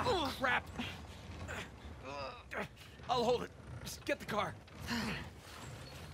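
A man answers briefly close by.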